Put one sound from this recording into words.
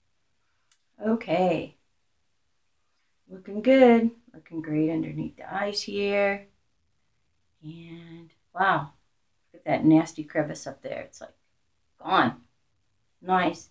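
An older woman speaks calmly and close by, in short bursts with pauses.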